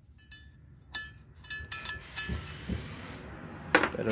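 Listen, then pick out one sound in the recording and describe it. Metal parts clink and scrape as they are handled.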